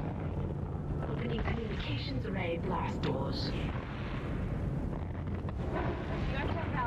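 A man talks close to a headset microphone.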